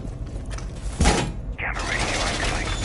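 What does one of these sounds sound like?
A metal barricade clanks and rattles into place against a wall.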